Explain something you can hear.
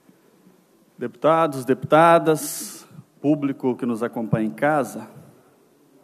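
A man speaks firmly through a microphone.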